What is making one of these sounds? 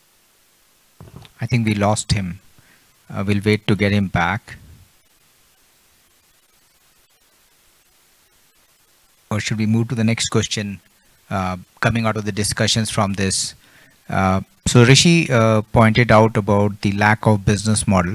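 A middle-aged man speaks calmly into a microphone, heard through a loudspeaker.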